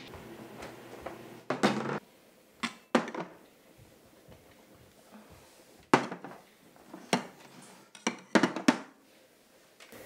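Metal bowls clink on a wooden table.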